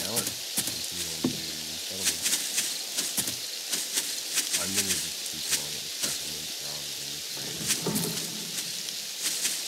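A young man talks casually, close to a microphone.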